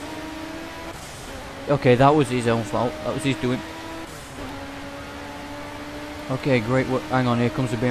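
A racing car engine drones steadily at high revs.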